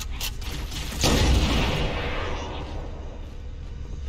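An energy weapon blasts with a loud rushing burst that slowly fades.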